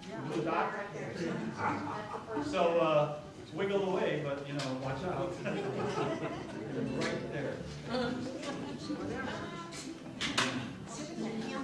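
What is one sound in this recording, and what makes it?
A large wind band plays music in an echoing hall.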